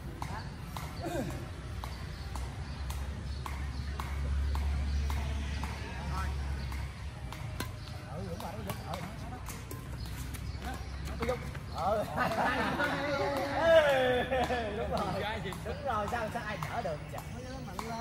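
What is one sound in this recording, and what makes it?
Badminton rackets knock a shuttlecock back and forth outdoors.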